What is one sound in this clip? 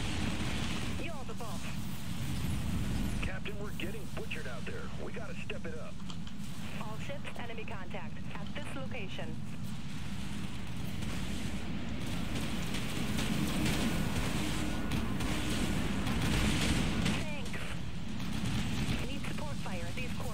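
A young man talks into a headset microphone, close and with animation.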